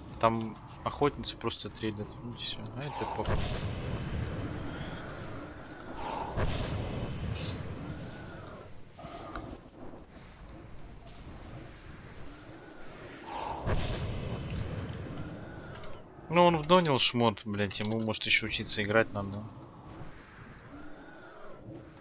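Magic spells whoosh and crackle during a fantasy battle.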